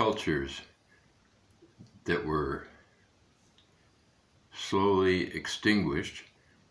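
An elderly man speaks calmly in short phrases, close to the microphone.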